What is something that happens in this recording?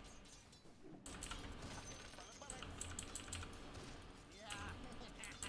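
Sharp fighting sounds of blows and spells clash rapidly.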